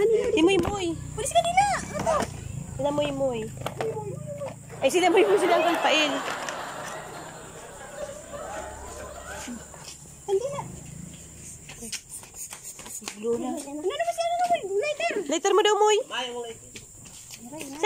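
A woman and children talk and call out close by, with animation.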